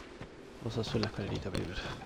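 Feet clatter on the rungs of a wooden ladder.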